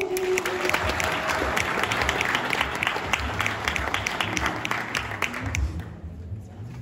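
An audience claps in a large hall.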